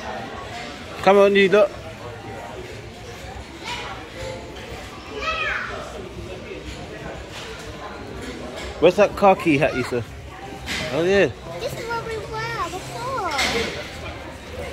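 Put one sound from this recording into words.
A young girl speaks and squeals close by.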